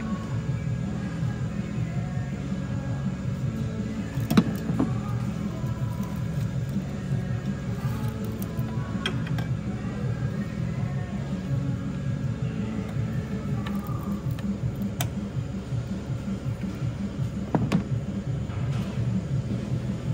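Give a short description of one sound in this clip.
Plastic parts click and rattle as hands work on an engine.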